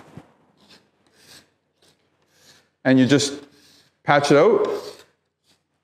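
A scraper scratches along a concrete floor.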